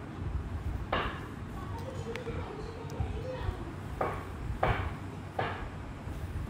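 Small plastic jars clack softly as they are set down.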